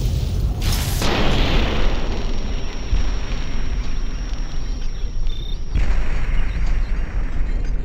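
A fiery explosion booms and rumbles.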